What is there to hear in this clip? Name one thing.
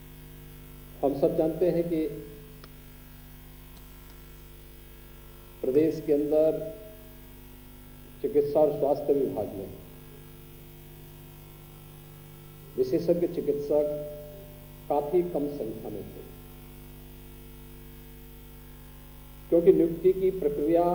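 A man speaks slowly and firmly into a microphone, in short phrases with long pauses, in a large echoing hall.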